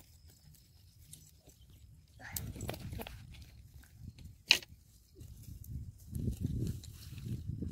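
Weeds are pulled from the ground with a rustling tear.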